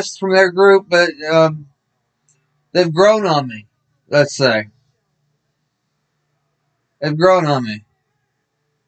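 A man speaks close by in short, animated bursts with pauses between them.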